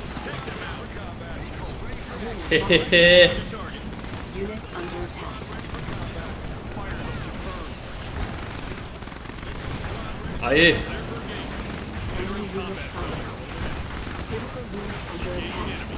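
Gunfire and explosions crackle throughout a battle.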